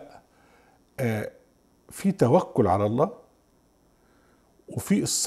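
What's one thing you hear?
An elderly man speaks with animation into a close microphone, in short bursts with pauses.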